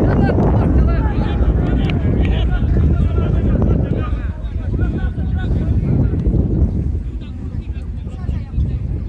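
Players shout to each other far off across an open field.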